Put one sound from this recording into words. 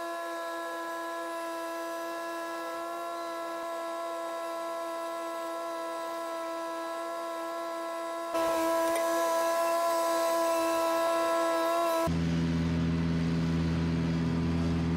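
A ride-on mower engine hums steadily close by.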